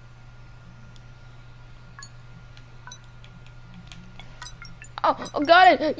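Soft electronic beeps and clicks sound as buttons are selected.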